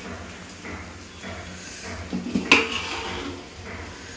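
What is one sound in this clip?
A metal lid clatters onto a steel pot.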